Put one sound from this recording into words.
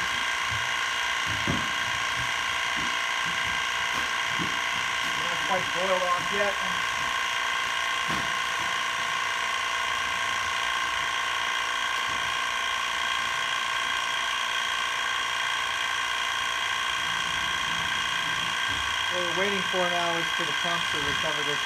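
A machine hums steadily with a high whine.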